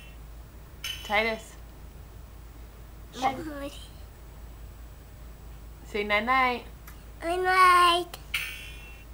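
A toddler babbles and squeals in a high voice close by.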